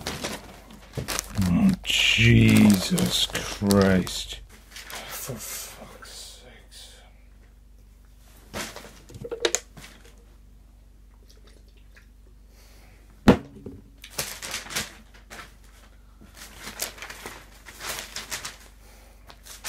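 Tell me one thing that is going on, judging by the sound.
Newspaper pages rustle and crinkle close by.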